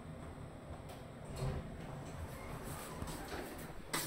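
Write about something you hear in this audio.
Elevator doors slide open.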